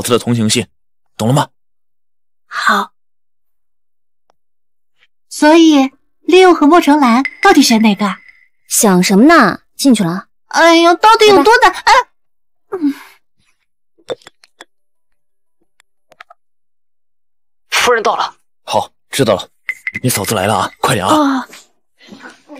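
A young man speaks with surprise, close by.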